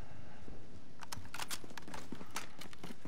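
A gun is handled with quick metallic clicks and rattles.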